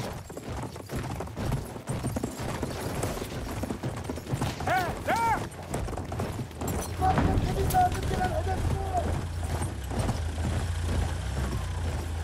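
Horse hooves thud on sand at a gallop.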